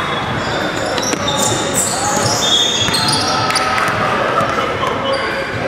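Sneakers squeak sharply on a hard court, echoing in a large hall.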